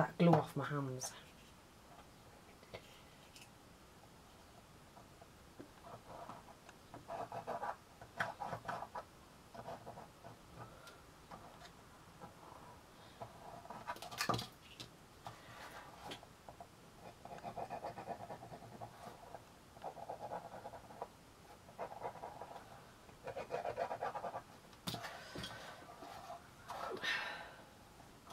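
Small cardboard pieces tap and rustle as they are handled on a table.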